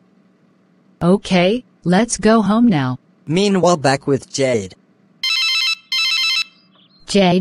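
A young woman speaks calmly in a flat, synthetic-sounding voice.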